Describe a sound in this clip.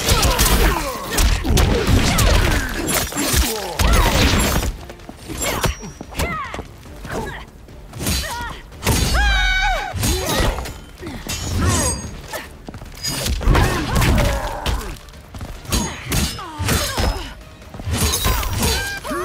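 Metal blades swing with sharp whooshes.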